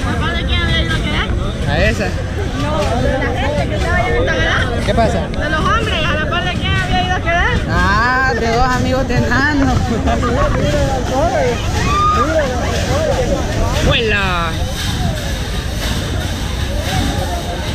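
A crowd chatters and shouts all around outdoors.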